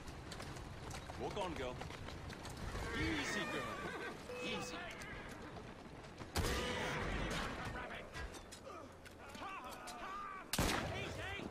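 Carriage wheels rumble over cobblestones.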